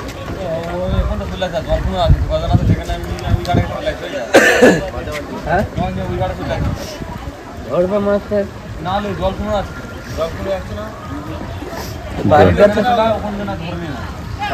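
Several men and women talk and call out nearby.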